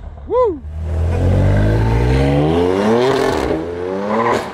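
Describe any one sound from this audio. A car engine revs loudly, rising in pitch.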